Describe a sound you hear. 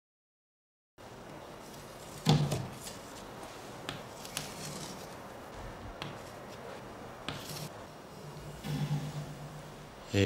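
Chalk scrapes across a wooden floor.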